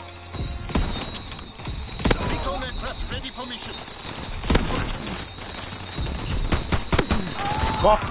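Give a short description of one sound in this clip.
Rifle shots ring out with sharp cracks.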